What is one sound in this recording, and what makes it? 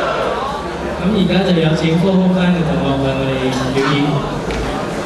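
A young man speaks into a microphone over loudspeakers.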